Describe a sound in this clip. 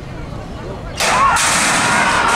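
Starting gates bang open.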